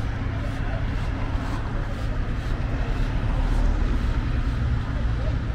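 A car drives past close by.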